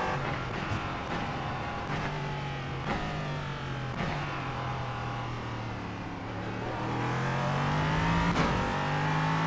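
A racing car engine whines loudly, dropping in pitch as it slows and then rising again as it speeds up.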